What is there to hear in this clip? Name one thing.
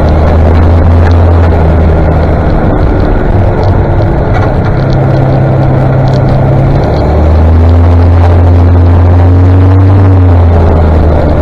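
Tractor engines rumble past one after another.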